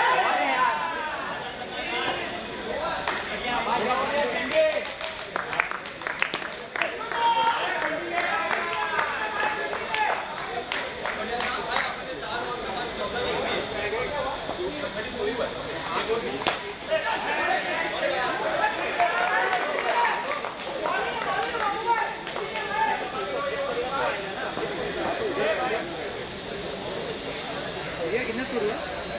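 Young men call out and shout to each other outdoors.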